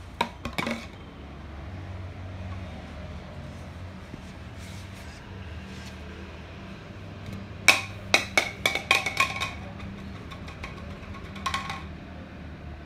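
Plastic rings clatter and knock on a hard floor.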